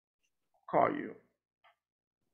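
A man says a few words through an online call.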